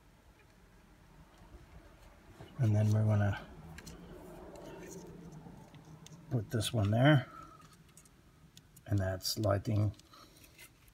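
Plastic and metal clips rattle and tap softly as they are handled.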